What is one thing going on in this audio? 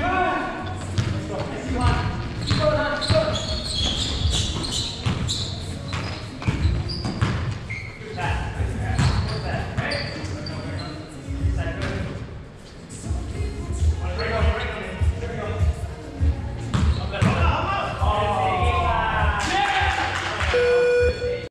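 Sneakers squeak on the wooden floor.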